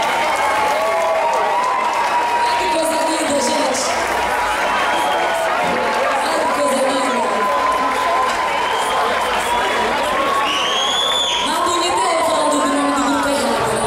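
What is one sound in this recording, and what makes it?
A woman sings into a microphone over the band.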